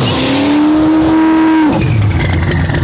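A race pickup truck's engine screams at full throttle and then lifts off.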